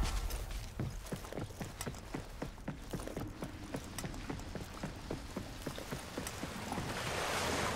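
Quick footsteps run over stone.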